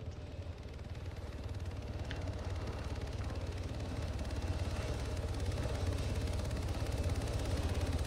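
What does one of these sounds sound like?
A helicopter's rotor thumps steadily overhead and grows louder as it comes near.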